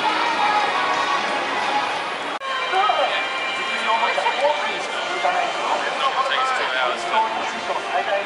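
A crowd of pedestrians chatters outdoors.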